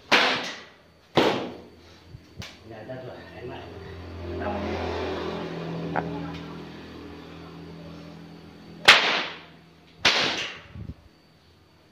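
A whip cracks sharply several times.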